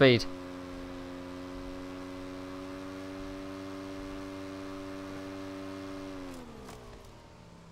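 A motorcycle engine hums steadily, then winds down and stops.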